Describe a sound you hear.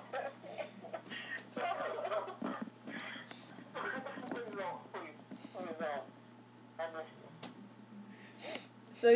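Young women laugh and giggle close by.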